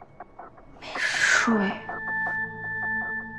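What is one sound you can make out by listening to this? A young woman speaks briefly and quietly.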